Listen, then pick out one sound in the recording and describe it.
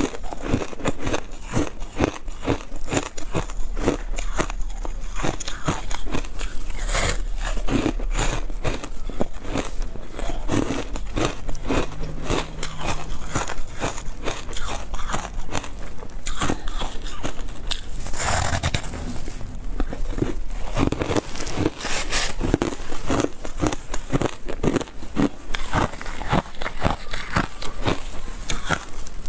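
A young woman chews soft food with wet, smacking sounds close to a microphone.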